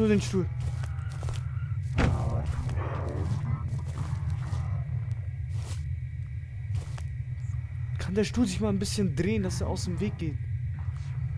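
A young man talks into a close microphone in short bursts.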